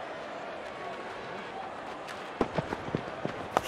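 A cricket bowler's feet thud on the grass during the run-up.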